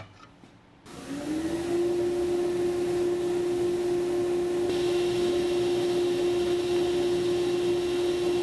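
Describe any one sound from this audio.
A table saw motor starts up and spins up to a steady high whine.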